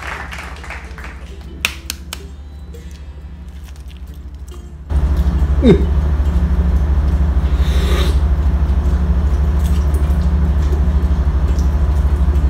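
An eggshell cracks and crinkles as it is peeled.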